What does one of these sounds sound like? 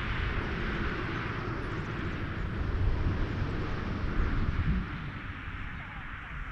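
A jet airliner taxis by with a loud, steady engine roar.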